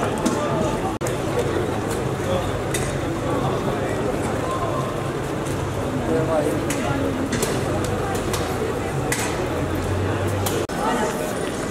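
Footsteps shuffle and tap on the pavement.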